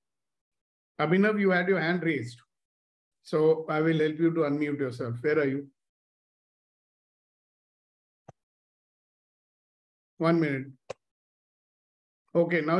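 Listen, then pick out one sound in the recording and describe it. An elderly man speaks calmly through an online call, pausing between phrases.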